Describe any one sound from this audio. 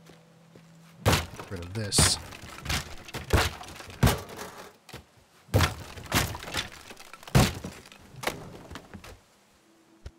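Wood and debris crack and clatter as walls break apart.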